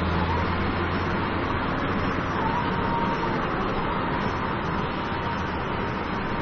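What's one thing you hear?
A car engine hums steadily from inside the car while driving.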